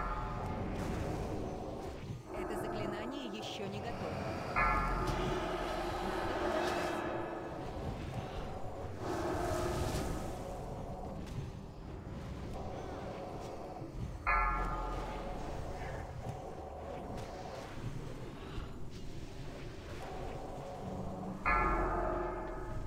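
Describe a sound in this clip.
Fantasy battle sounds clash and burst with spell effects.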